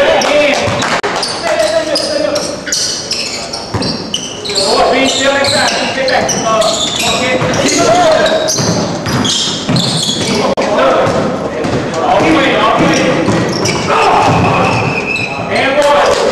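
Young men shout and call out to each other across the hall.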